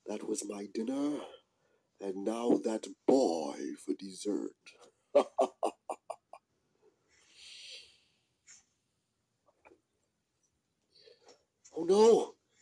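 A man talks animatedly in a high, silly puppet voice, close by.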